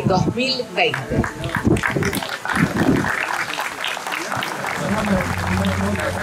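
People clap their hands in applause.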